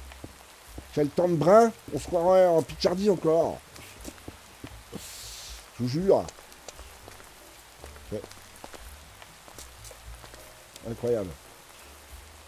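A middle-aged man talks casually into a close microphone.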